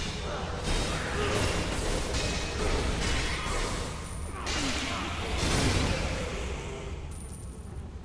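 Magic blasts crackle and roar in loud bursts.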